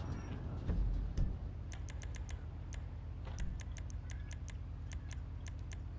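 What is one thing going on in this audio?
Quick menu clicks tick in a rapid series.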